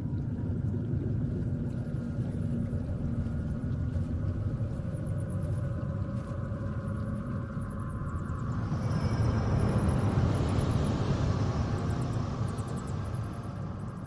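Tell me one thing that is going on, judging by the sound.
Water laps and gurgles over mud.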